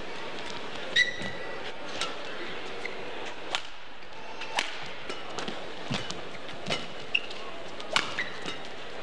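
A racket strikes a shuttlecock back and forth with sharp pops.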